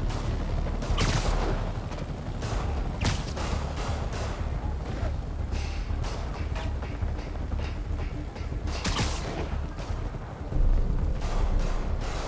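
Quick whooshes and zips sound as a figure swings through the air.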